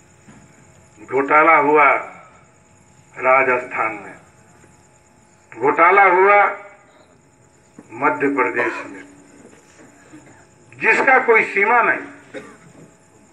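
A man speaks loudly through a microphone and loudspeaker in short, spaced bursts.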